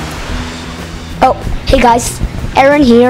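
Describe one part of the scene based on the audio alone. A young boy speaks into a microphone.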